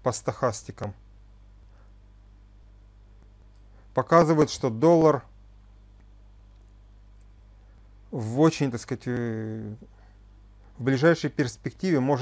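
A middle-aged man speaks calmly in short phrases with pauses, heard through a microphone over an online call.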